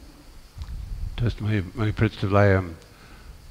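A man speaks calmly through a close microphone.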